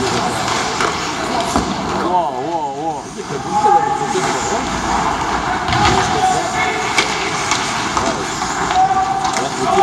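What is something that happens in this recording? Spectators murmur and chatter close by.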